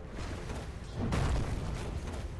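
An explosion booms from a video game.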